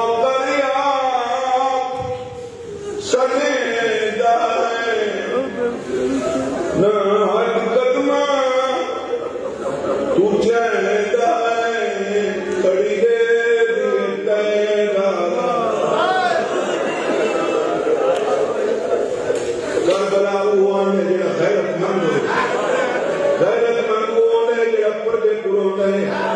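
A man recites with strong feeling through a microphone and loudspeakers in an echoing hall.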